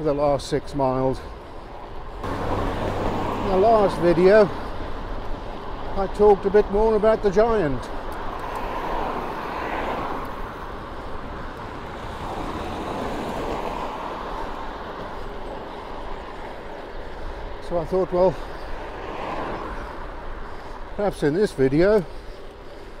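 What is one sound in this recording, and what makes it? Wind buffets loudly against a moving bicycle.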